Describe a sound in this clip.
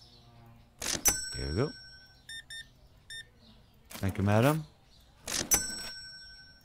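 An electronic chime rings out from a checkout.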